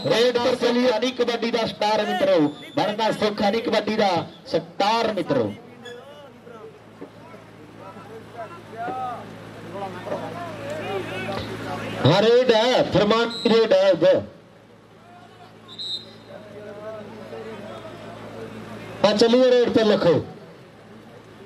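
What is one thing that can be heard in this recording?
A man talks loudly through a loudspeaker, echoing outdoors.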